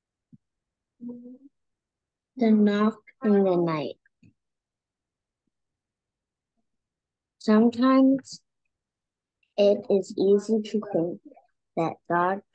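A young woman speaks calmly and clearly into a nearby microphone, with pauses.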